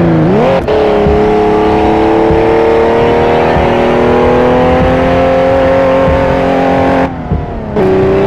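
A racing car engine revs hard and climbs steadily in pitch.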